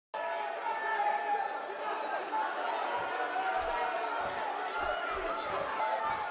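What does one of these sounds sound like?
A large crowd cheers loudly in a big arena.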